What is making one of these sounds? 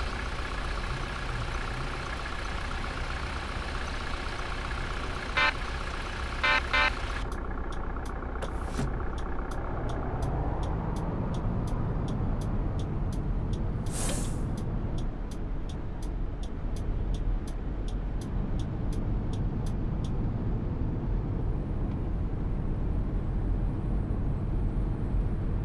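A bus engine rumbles low and steady, rising as the bus pulls away.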